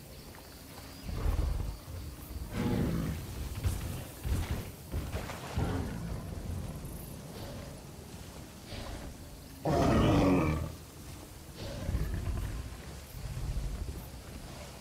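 A large animal grunts and bellows in low, deep bursts.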